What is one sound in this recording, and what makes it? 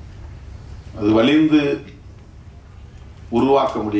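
A middle-aged man speaks slowly into a microphone in an echoing room.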